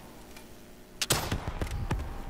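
A gun fires with sharp, loud bangs.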